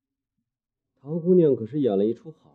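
A man speaks in a low, mocking voice close by.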